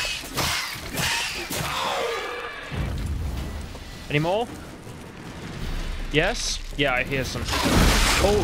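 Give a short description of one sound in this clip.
A sword slashes and strikes with sharp hits.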